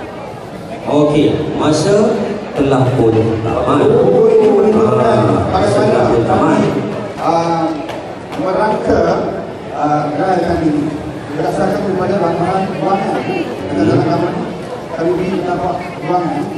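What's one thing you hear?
Several men chant together through microphones.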